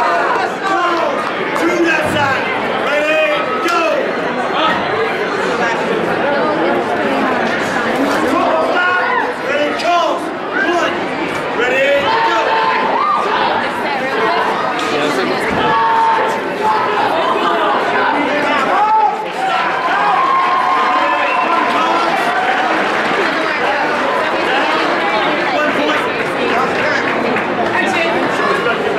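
Men and women shout encouragement from close by.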